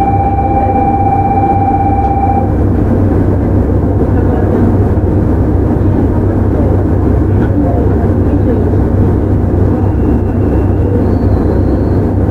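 An electric train rumbles steadily along the tracks close by.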